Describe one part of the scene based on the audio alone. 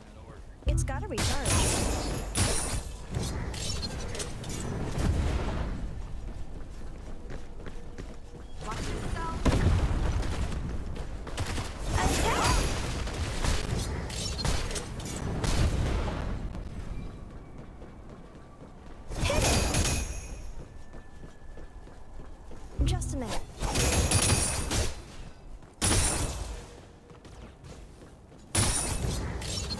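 Magic blasts and sword strikes crash in bursts.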